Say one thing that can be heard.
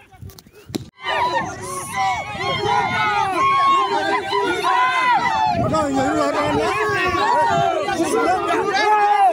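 A crowd of men sings and chants loudly close by.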